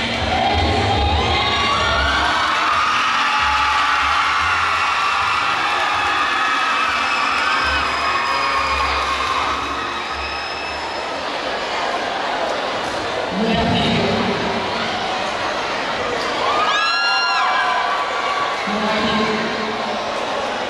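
Music with a steady beat plays through loudspeakers in a large echoing hall.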